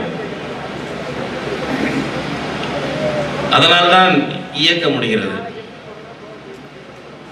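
An elderly man speaks loudly and forcefully through a microphone and loudspeakers.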